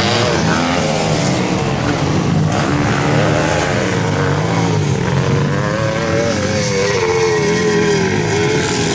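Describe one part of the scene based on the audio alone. Dirt bike engines rev and whine loudly, rising and falling in pitch.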